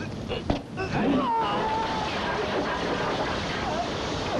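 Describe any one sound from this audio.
A body crashes into snapping branches and leaves.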